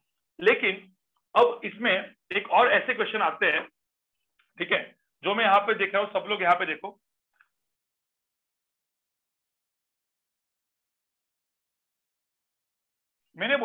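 A man talks calmly through a microphone, in short bursts with pauses.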